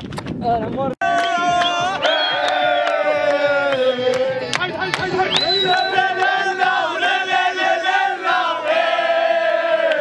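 A group of young men sing and chant loudly together outdoors.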